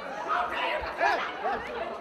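A woman shouts angrily.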